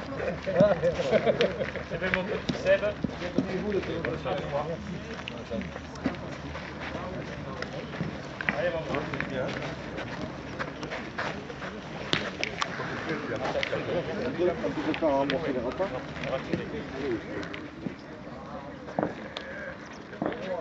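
Several men talk and chat nearby outdoors.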